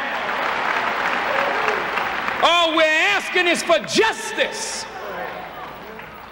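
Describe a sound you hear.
A large audience murmurs and cheers in an echoing hall.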